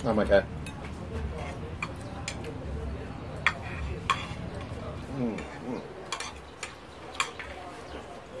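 Cutlery clinks against plates.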